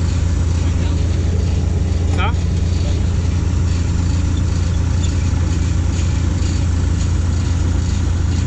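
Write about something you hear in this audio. A heavy diesel engine rumbles steadily close by.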